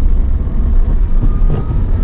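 A windscreen wiper sweeps across the glass.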